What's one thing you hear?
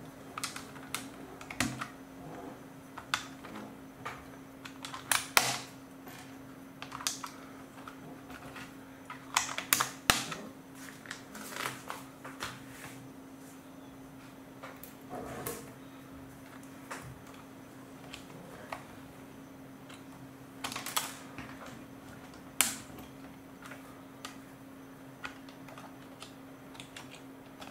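Plastic toy bricks click and snap together under fingers, close by.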